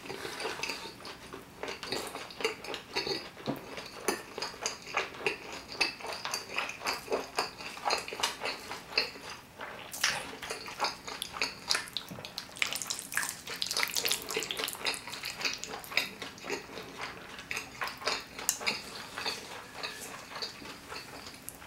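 A man chews food wetly and loudly, close to a microphone.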